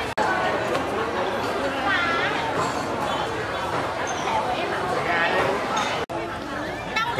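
Young men and women chat at close range.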